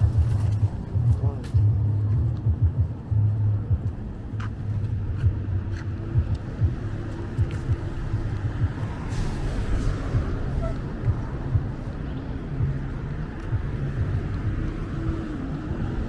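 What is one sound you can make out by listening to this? Traffic rumbles along a wide city street in the distance.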